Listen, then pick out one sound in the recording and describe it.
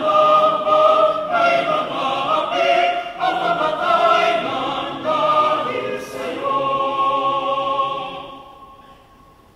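A large crowd sings together in an echoing hall, then falls silent.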